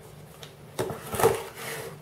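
A blade slices through packing tape.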